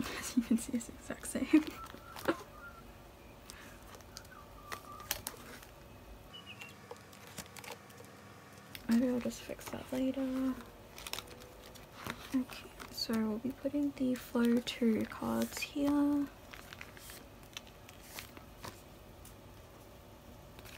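Plastic sleeves rustle and crinkle as they are handled.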